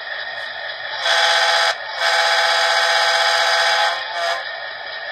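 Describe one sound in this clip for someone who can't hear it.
A model locomotive's horn sounds in long blasts from a small speaker.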